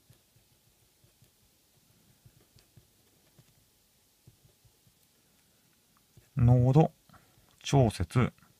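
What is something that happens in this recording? A felt-tip marker squeaks and scratches softly on paper.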